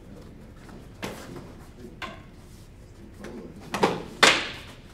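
Wooden sticks clack together in sharp knocks.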